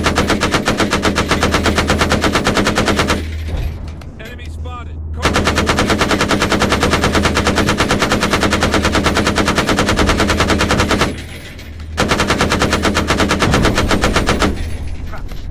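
A cannon fires in rapid, rattling bursts.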